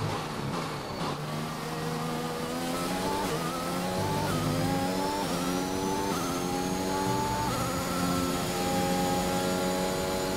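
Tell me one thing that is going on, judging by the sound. A racing car engine screams, rising in pitch through each gear and dropping with every shift.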